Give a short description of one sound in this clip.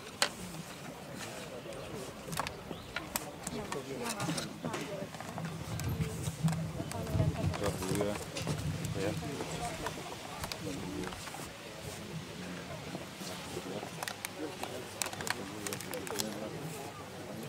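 A crowd of men and women murmurs outdoors.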